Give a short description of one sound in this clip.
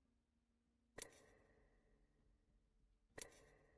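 A sharp interface click sounds twice.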